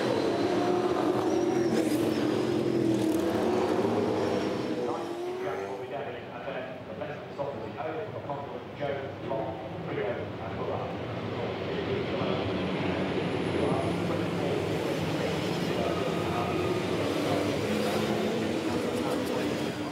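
Racing car engines roar and drone steadily as the cars pass at low speed.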